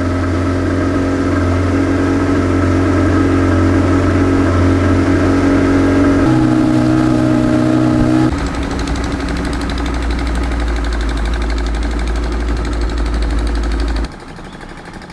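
A boat motor drones steadily.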